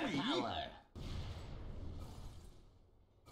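A fiery blast booms.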